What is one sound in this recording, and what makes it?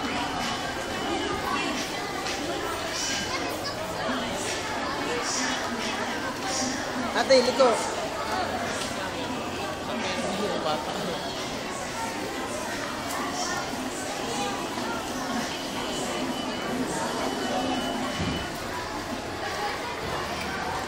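A crowd of children and adults chatters in a busy echoing hall.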